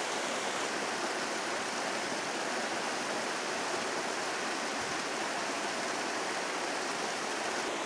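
Water trickles and drips down a mossy rock face.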